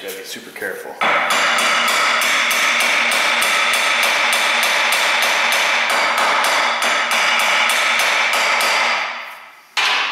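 A hammer strikes metal in rapid, even blows that ring loudly.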